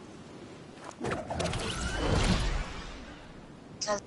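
A glider snaps open with a loud whoosh.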